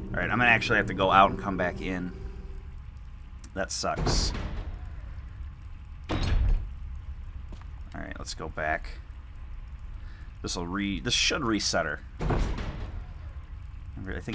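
A heavy metal door creaks and thuds open.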